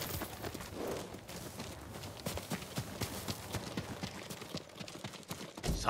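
Footsteps crunch over dry grass and leaves.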